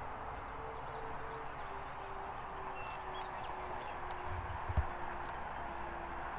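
A propeller plane drones steadily overhead in the distance.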